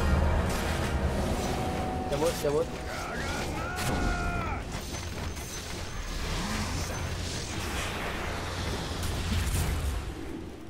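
Magic blasts and weapon hits crackle and clash in a busy fight.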